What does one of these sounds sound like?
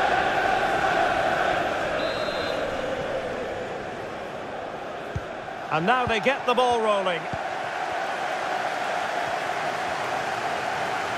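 A large stadium crowd murmurs and cheers steadily.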